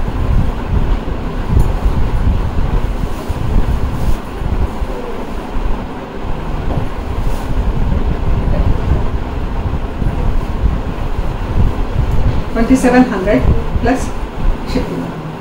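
Silk fabric rustles as it is unfolded and handled.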